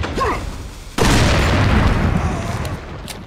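A pistol fires a loud shot that echoes.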